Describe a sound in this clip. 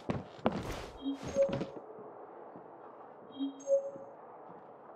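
A bright game chime rings.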